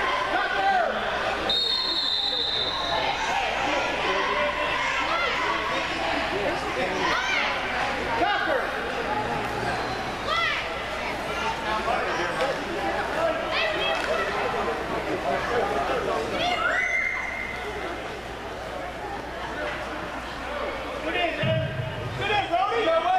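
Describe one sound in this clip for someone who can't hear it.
Young players shout and chatter across a large echoing indoor hall.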